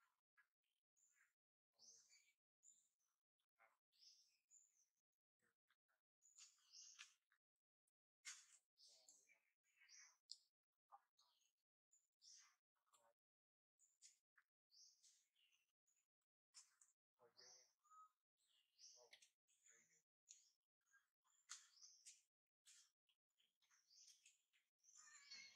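A baby monkey squeals and cries in short, shrill bursts close by.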